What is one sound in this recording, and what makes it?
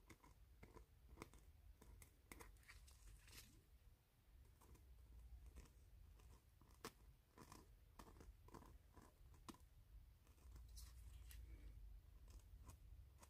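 A pen tip taps lightly on a hard resin surface.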